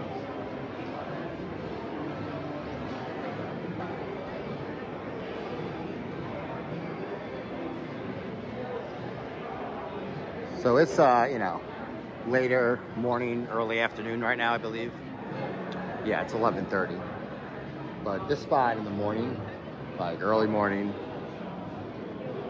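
A crowd murmurs and chatters in the background of a large echoing hall.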